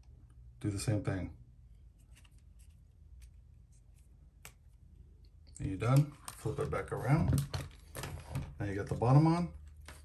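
Small plastic parts click and rattle as they are fitted together.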